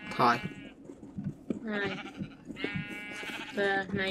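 Sheep bleat close by.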